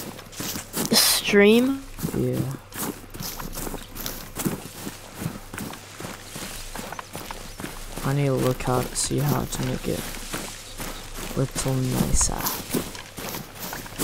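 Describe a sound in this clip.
Footsteps swish and rustle through tall grass.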